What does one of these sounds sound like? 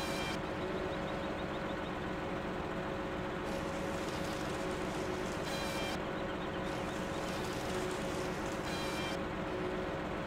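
A chainsaw blade whines as it cuts through a log.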